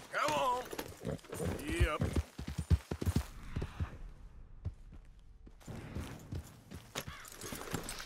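A horse's hooves thud on grass at a gallop.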